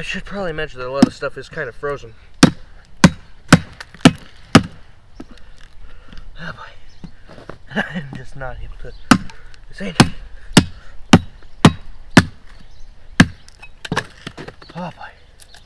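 A heavy blade chops into a log with sharp, repeated knocks.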